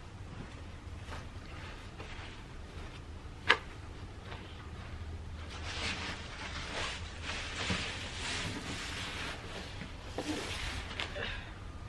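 A wooden board scrapes and thumps on grass.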